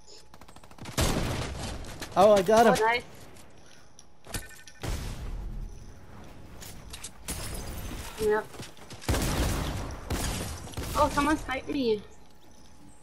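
Gunshots ring out in loud bursts.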